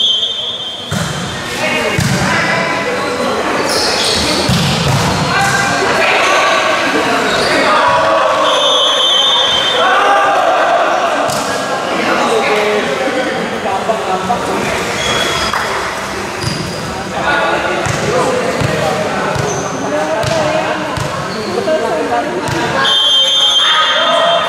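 A volleyball is struck hard with the hands.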